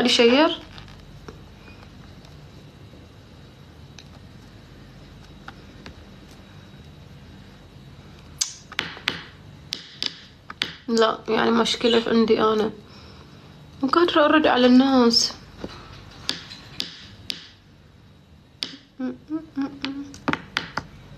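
A young woman speaks briefly and casually, close to a phone's microphone.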